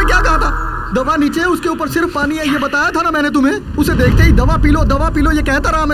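A man speaks loudly and forcefully close by.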